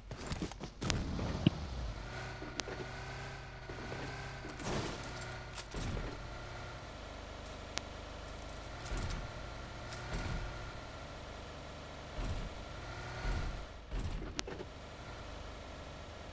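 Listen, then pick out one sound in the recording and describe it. A car's body knocks and bumps over uneven ground.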